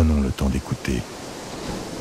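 Water splashes as swimmers kick.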